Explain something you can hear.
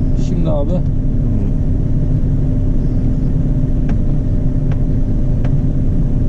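A heavy engine rumbles steadily close by.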